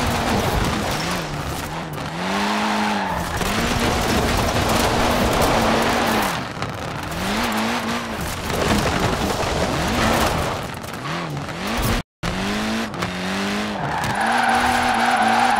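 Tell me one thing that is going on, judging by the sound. A car engine revs up and down as the car drifts.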